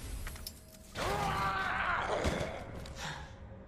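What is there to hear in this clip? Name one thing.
A creature snarls and groans.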